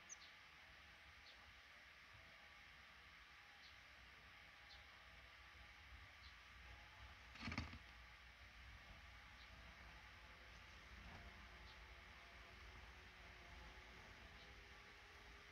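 Small birds chirp softly now and then, close by.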